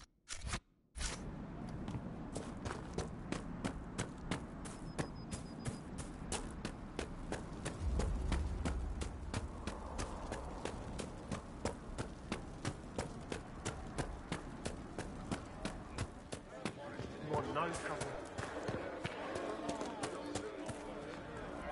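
Footsteps thud quickly and steadily as someone runs.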